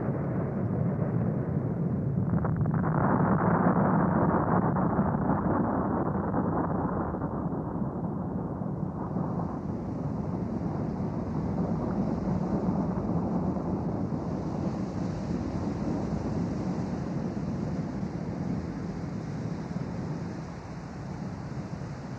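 A volcano rumbles deeply as it erupts.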